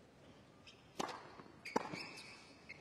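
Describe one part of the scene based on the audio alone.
A tennis racket strikes a ball with sharp pops.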